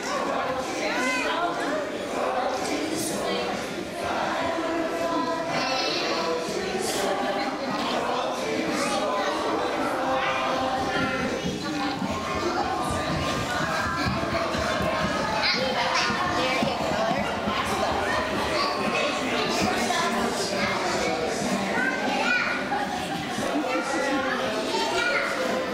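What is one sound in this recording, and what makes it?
Young children chatter and squeal nearby.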